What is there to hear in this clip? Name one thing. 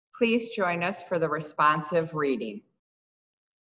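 A woman speaks over an online call, reading out.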